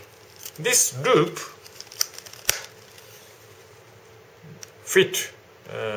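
Leather rubs and creaks as a knife slides into a sheath.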